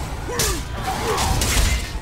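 A magic beam crackles and hums.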